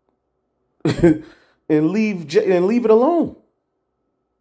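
A man speaks with animation through a phone's speaker.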